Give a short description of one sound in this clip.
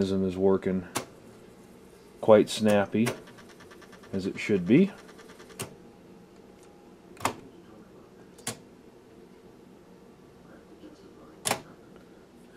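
Buttons on a cassette deck click as they are pressed.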